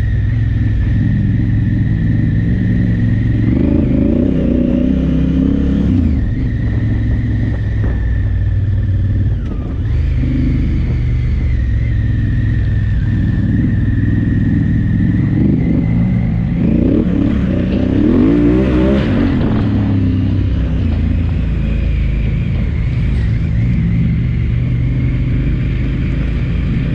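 A motorcycle engine hums steadily and revs up and down close by.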